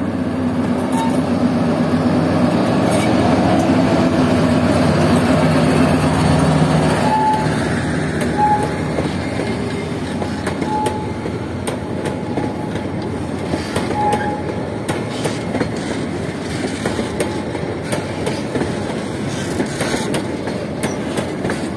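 Train wheels clatter and click over the rail joints.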